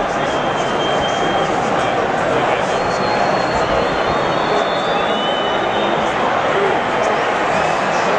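A large crowd in an open stadium chants and roars.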